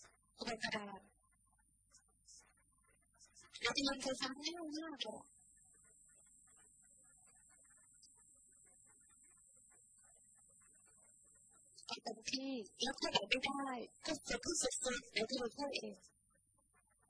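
A woman speaks calmly and clearly into a microphone, in short bursts with pauses.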